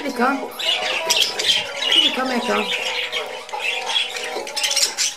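Budgies chirp and warble close by.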